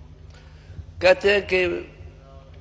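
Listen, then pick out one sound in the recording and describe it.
A middle-aged man speaks a few words into a microphone.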